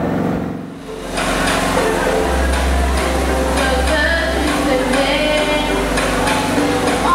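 A young woman speaks into a microphone over a loudspeaker.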